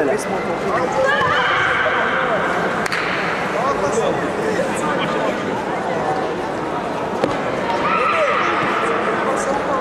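A young man lets out a sharp, drawn-out shout.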